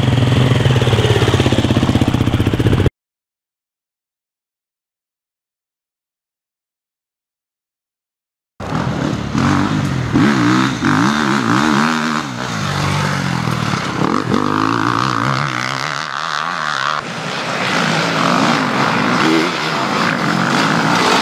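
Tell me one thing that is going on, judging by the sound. A motorcycle engine revs loudly up and down.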